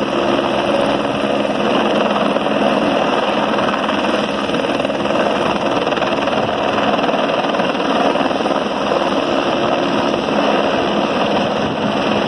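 A helicopter hovers close overhead with loud, steady whirring rotor blades.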